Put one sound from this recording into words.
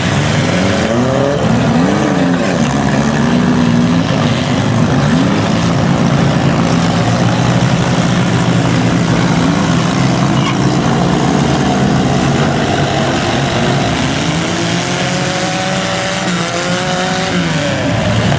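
Car engines rev loudly and roar throughout.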